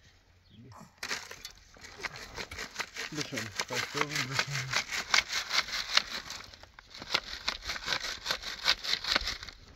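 A shovel digs and scrapes into dry, stony soil.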